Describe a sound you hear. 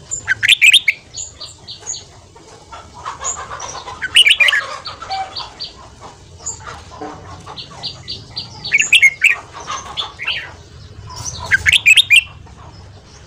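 Birds in a cage chirp and sing in loud, repeated bursts.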